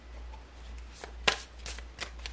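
Playing cards riffle and slap together as a deck is shuffled.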